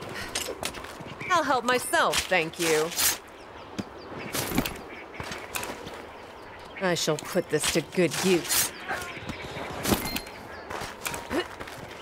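A blade slices into flesh with wet, tearing cuts.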